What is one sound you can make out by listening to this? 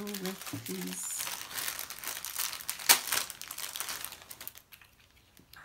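A plastic wrapper crinkles as hands unwrap it.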